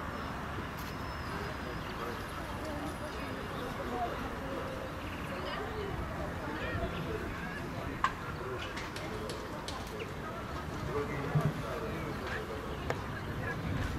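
A crowd of adults and children murmurs and chatters outdoors.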